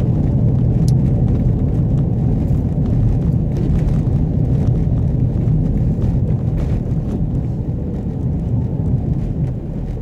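Tyres roll over the road surface.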